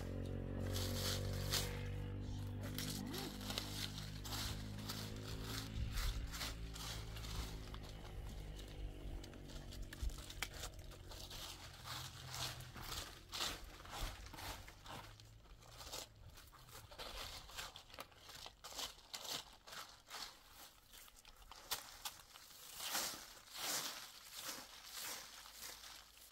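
A straw broom sweeps and scratches through dry leaves in quick strokes.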